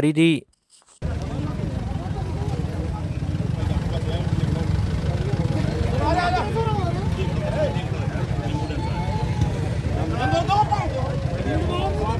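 A crowd of men talk over one another outdoors.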